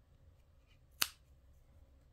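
Scissors snip through yarn.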